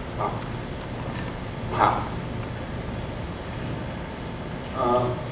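A man speaks into a microphone over loudspeakers in a large hall, in short bursts.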